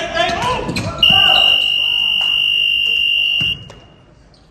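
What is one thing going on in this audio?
A game buzzer sounds loudly and steadily.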